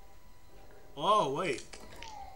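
A cat meows loudly with a wavering cry.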